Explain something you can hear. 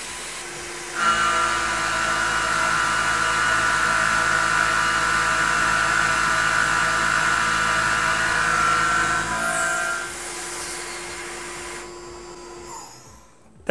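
A milling machine whines steadily as its cutter grinds into metal.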